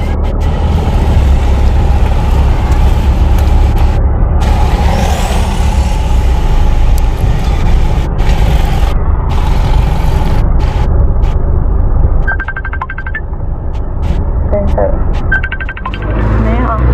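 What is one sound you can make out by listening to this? A car engine rumbles steadily while driving on a wet road.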